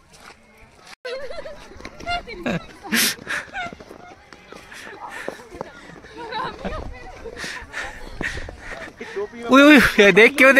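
Young women laugh and shout playfully outdoors.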